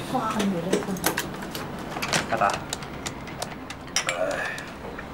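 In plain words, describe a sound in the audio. Dishes and cups clink on a table.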